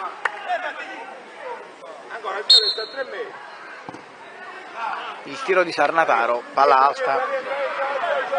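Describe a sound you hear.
Children shout and call out loudly outdoors.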